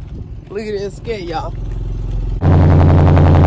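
A car engine idles with a low rumble.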